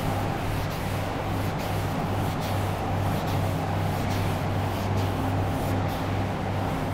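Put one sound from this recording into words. A duster rubs and swishes across a chalkboard in quick strokes.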